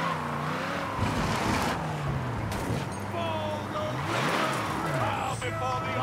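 Tyres skid on dirt.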